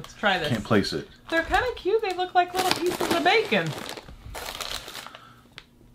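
A chip bag crinkles.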